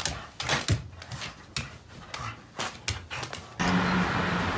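Paper rips and tears as two dogs tug at it.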